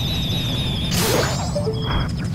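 A video game explosion bursts with a sharp crackle.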